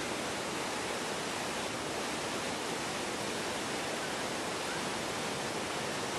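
A stream rushes steadily over rocks nearby.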